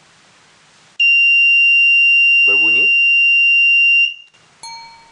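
An electronic tester gives a steady high beep.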